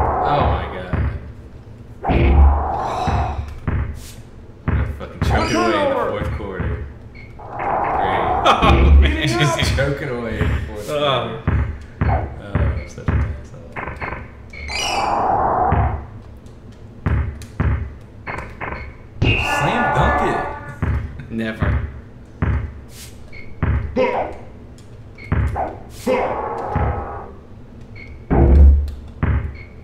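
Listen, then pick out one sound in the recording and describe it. A basketball bounces repeatedly on a hard court.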